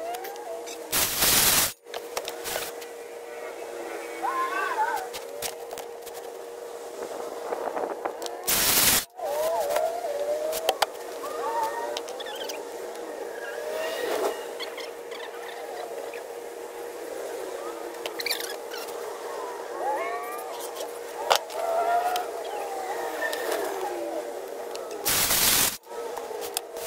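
A circular saw whirs loudly in short bursts as it cuts wood.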